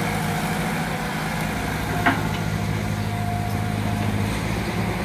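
An excavator's diesel engine rumbles steadily nearby.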